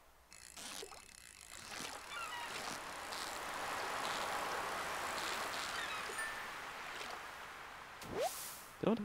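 A fishing reel whirs steadily.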